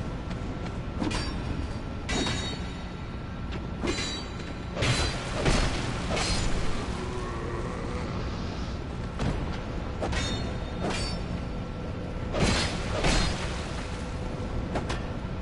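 Blades swing and strike hard in a close fight.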